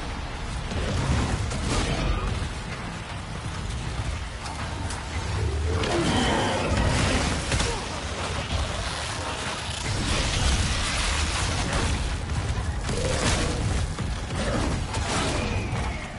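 A monster snarls and screeches close by.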